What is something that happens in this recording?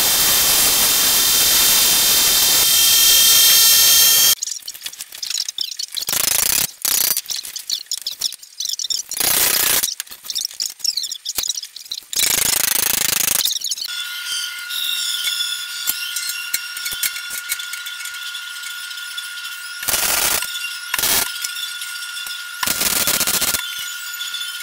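An arc welder crackles and hisses loudly.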